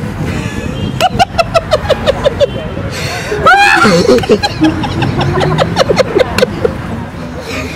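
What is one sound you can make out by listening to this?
A young man laughs loudly in bursts, close by.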